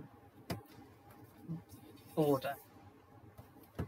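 A card taps softly as it is set down on a mat.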